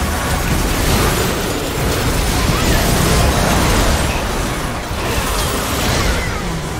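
Game spell effects crackle and boom in a hectic fight.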